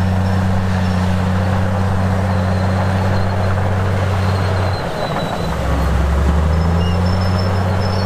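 A bulldozer engine rumbles steadily and changes pitch as the machine works.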